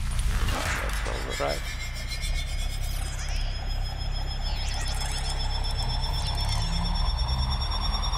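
A low electric hum rises in pitch as an energy beam powers up.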